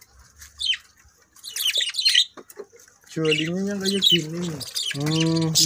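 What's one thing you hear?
Small parrots chirp and squawk shrilly nearby.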